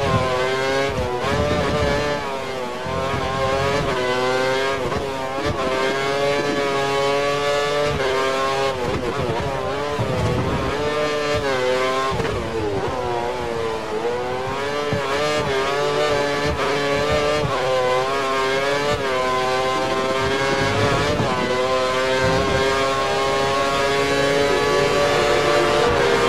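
A racing car engine screams at high revs, rising and dropping as the gears shift.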